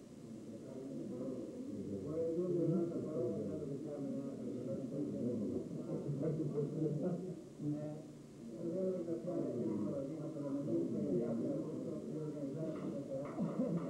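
A middle-aged man speaks to a room.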